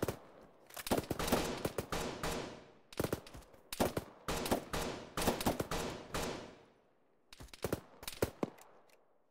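Rifle shots crack in quick bursts and echo loudly across open ground.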